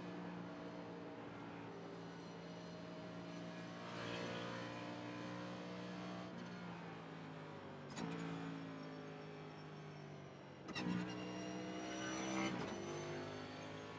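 A race car engine drones steadily, its pitch shifting as gears change.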